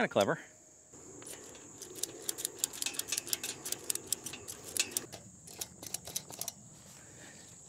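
Plastic fittings click and rattle as they are worked onto a pipe.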